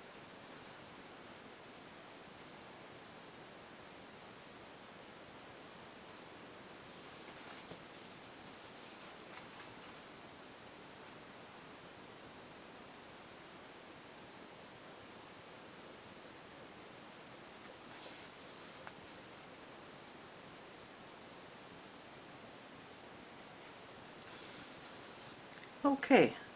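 Thread rustles softly as it is pulled through cloth.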